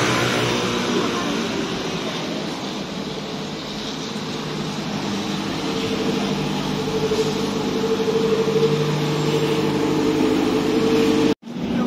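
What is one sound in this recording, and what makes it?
A bus engine rumbles and idles close by.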